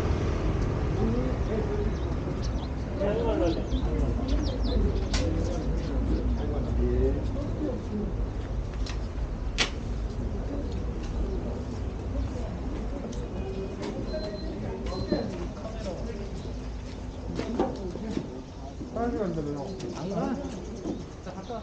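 Men and women talk nearby in low voices.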